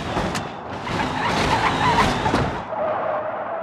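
A car crashes and its body crunches and scrapes.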